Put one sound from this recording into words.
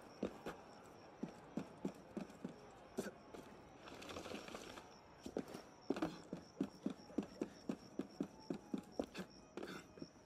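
Footsteps thud quickly on a roof.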